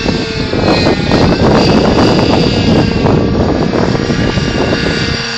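A model airplane engine whines steadily overhead.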